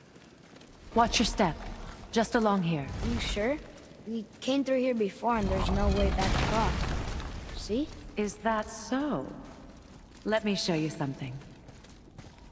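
A man speaks in a deep, calm voice.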